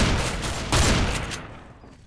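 A shotgun is pumped with a metallic clack.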